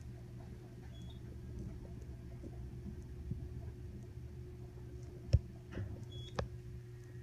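An elevator chime beeps briefly as it passes each floor.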